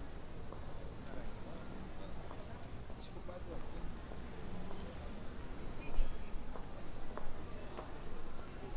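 Distant voices of passers-by murmur outdoors.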